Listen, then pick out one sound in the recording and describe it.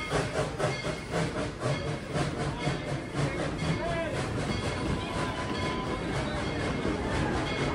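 Train cars clatter rhythmically along the tracks close by.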